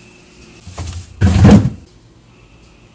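Strawberries tumble into a plastic bowl.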